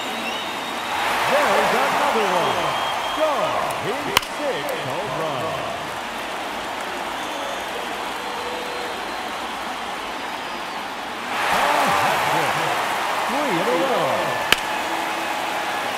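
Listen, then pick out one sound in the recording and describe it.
A crowd cheers loudly and then settles.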